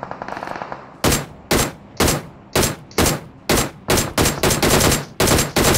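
Rifle shots fire one after another in loud, heavy bangs.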